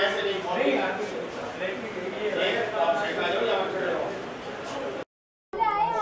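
Several men talk over one another in a crowded room.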